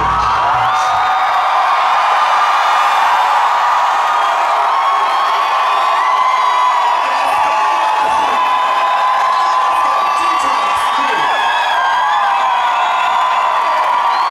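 Young women sing into microphones, heard loudly through speakers in a large hall.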